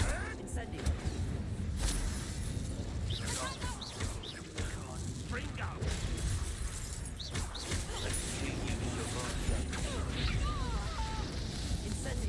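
Magic blasts crackle and explode.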